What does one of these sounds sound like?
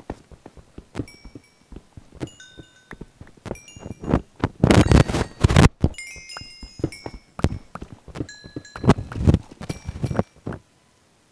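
Short bright pops sound as video game items are picked up.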